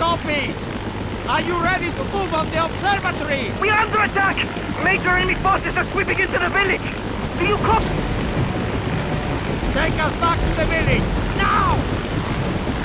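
A man speaks urgently and with animation.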